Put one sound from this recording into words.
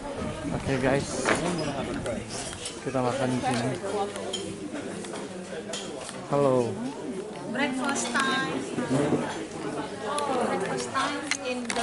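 Many voices chatter in a busy, echoing room.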